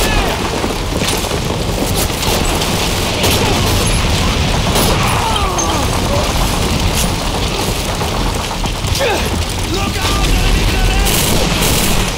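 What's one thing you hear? Gunshots crack sharply several times, echoing between buildings.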